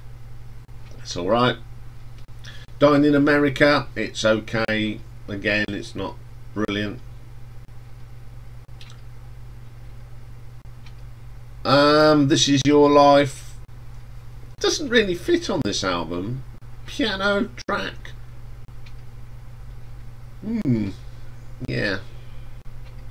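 A middle-aged man talks calmly into a close microphone, with pauses.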